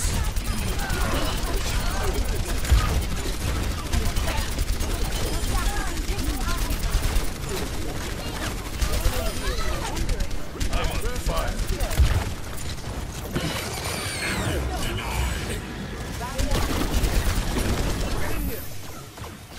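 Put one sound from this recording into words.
A rapid-fire weapon shoots in quick bursts.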